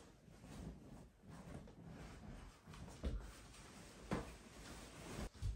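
Footsteps thud on a floor indoors.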